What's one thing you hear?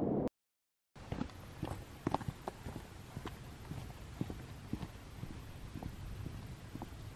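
Footsteps crunch on a dirt path close by.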